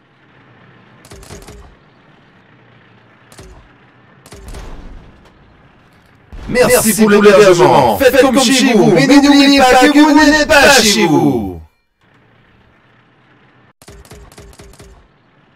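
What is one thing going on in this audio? Small cannon shots pop in quick bursts.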